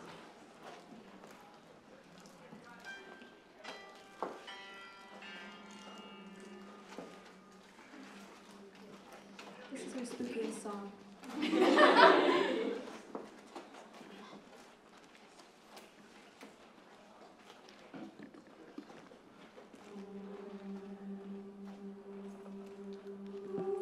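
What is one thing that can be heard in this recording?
A young woman sings into a microphone in a large room.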